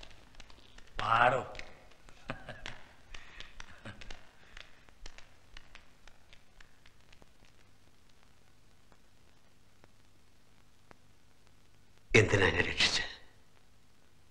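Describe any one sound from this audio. A man speaks quietly and earnestly, close by.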